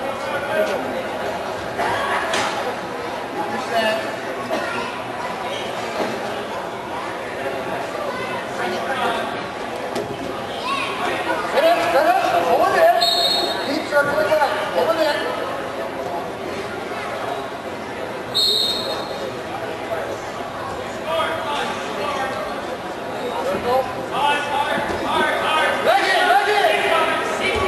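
A crowd of spectators shouts encouragement.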